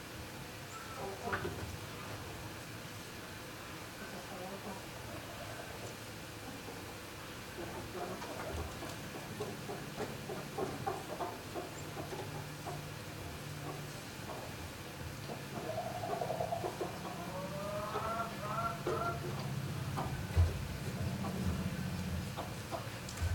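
Chickens cluck softly close by.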